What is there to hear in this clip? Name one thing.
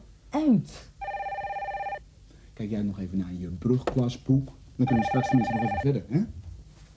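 A telephone rings twice.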